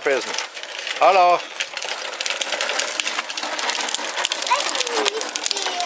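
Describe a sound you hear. Small pedal karts roll and crunch over a rough paved road.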